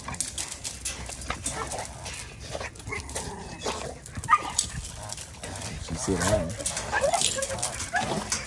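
A metal chain rattles and clinks as a dog tugs on it.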